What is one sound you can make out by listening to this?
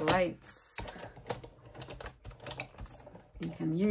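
A hand crank turns on a machine with a low grinding rattle.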